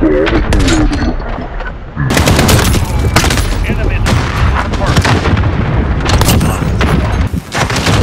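Rapid gunfire rattles and cracks.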